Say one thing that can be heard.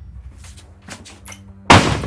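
Boots step on a hard floor.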